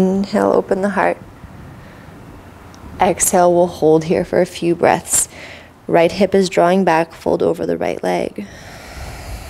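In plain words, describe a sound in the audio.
A woman speaks calmly and clearly into a close microphone, giving instructions.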